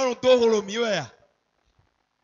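A second man answers through a microphone.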